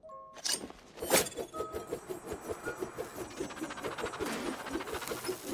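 A small flying blade whirs and buzzes in a fast, pulsing rhythm.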